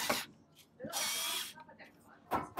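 A power drill whirs briefly.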